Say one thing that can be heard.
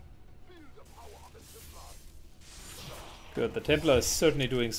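Electricity crackles and sizzles in short bursts.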